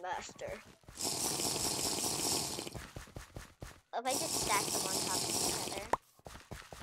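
A game character gulps down a potion.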